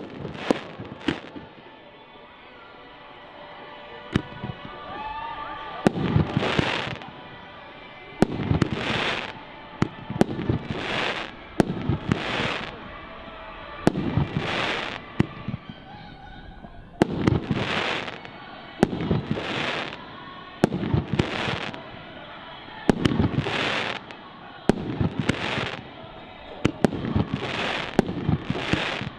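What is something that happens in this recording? Fireworks bang loudly overhead, over and over.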